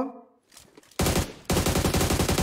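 A rifle fires in fast, rattling bursts.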